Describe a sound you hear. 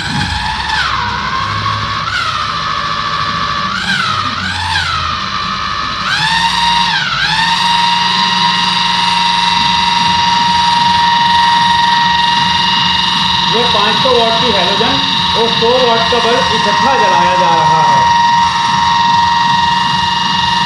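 An electric motor whines, surging up and down in pitch before settling into a steady high hum.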